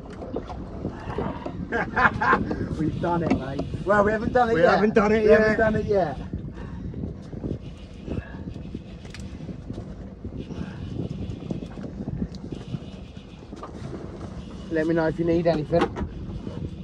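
A man talks with animation close by, outdoors in wind.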